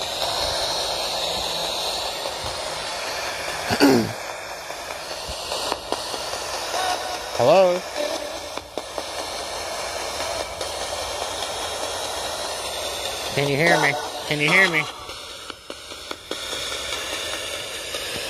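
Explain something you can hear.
Radio static hisses from a small speaker on a handheld radio-sweep device.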